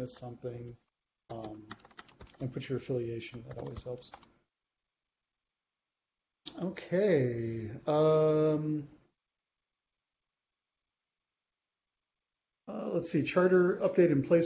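A middle-aged man talks calmly over an online call, with pauses.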